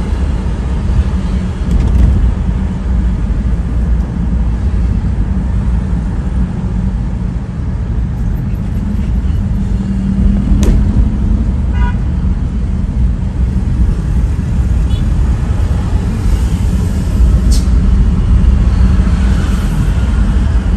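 Motorcycles and cars drone along the road nearby.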